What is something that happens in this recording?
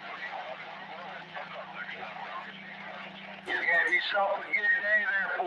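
A radio hisses with static and garbled, crackling chatter.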